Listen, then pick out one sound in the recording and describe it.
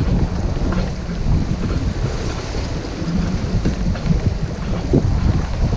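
Water rushes and splashes against the hull of a moving boat.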